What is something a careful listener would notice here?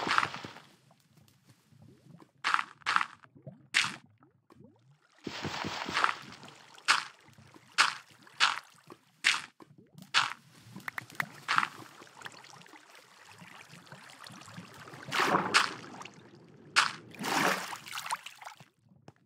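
Blocks are placed and broken with short dull thuds.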